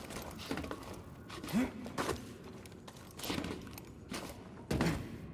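Hands and feet clank on a metal grate during a climb.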